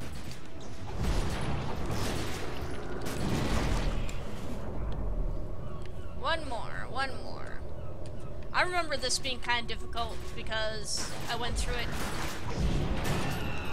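Magic blasts whoosh and crackle during a fight.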